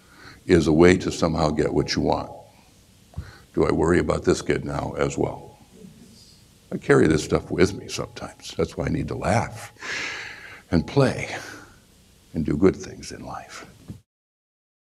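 A middle-aged man speaks with animation into a microphone, in pauses.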